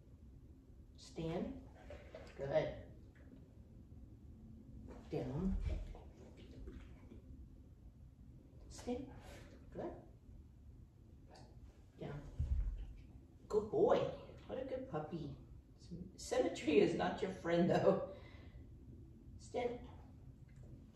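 An adult woman speaks close by, giving a dog short commands and praise.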